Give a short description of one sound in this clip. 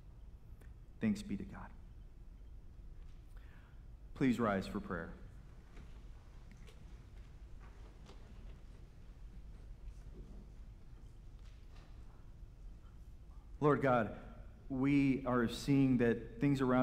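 A man speaks slowly through a microphone in a large echoing hall, with long pauses.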